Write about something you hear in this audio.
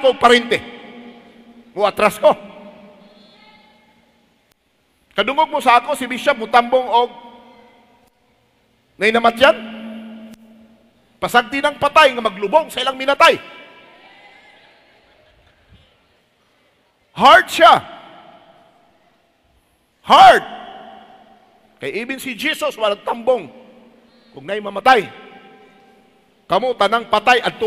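A middle-aged man preaches forcefully through a microphone in a large echoing hall, in bursts with pauses.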